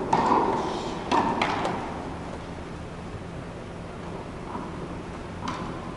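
A tennis ball bounces and is hit with sharp thuds that echo in a large hall.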